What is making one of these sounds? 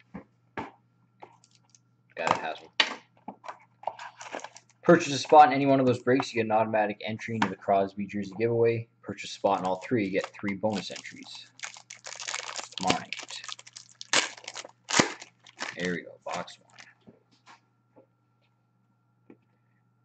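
Cardboard packaging scrapes and taps as it is handled close by.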